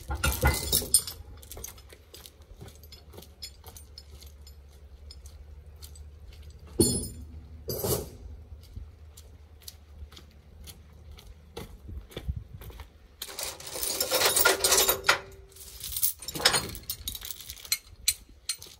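Metal chains clank and rattle.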